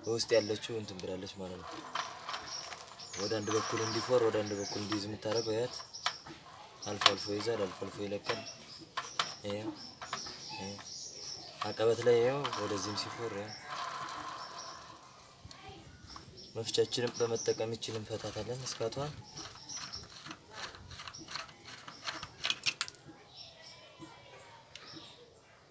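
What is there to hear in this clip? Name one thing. Metal parts of a bicycle freewheel click and rattle as a hand turns them.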